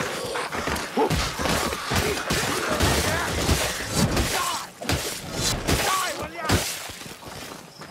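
Heavy blade strikes slash and thud into enemies.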